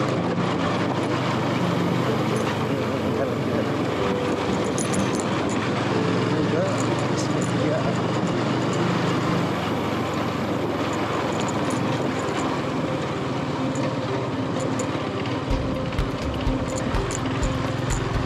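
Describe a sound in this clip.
Tyres rumble and bump over a rough dirt road.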